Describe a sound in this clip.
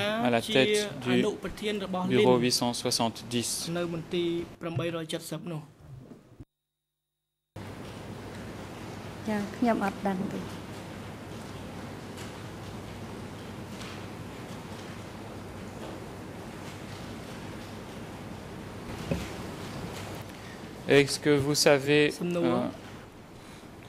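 A man speaks steadily into a microphone in a calm, formal voice.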